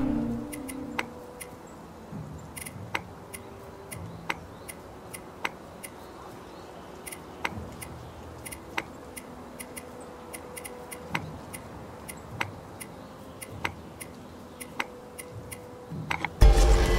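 Soft chiming clicks sound again and again at a steady pace.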